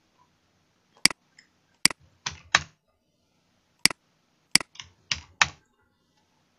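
A computer mouse clicks several times.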